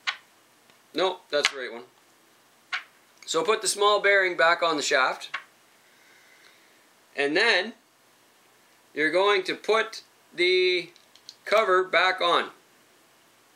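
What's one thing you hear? A young man talks calmly close to a microphone.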